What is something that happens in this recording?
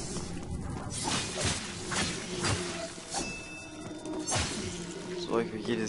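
A sword swishes and strikes in quick slashes.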